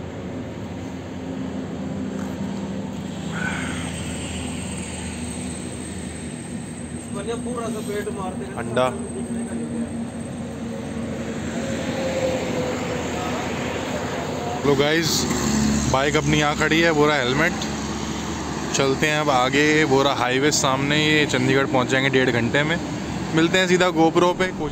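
Traffic hums along a nearby road.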